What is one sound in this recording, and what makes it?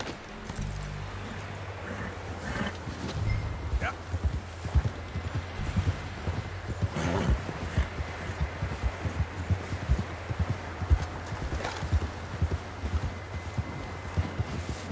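A horse gallops through snow with quick, muffled hoofbeats.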